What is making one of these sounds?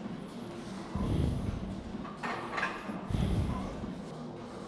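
Weight plates clank against a barbell.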